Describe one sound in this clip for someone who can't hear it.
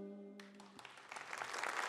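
An orchestra plays a final chord that ends abruptly.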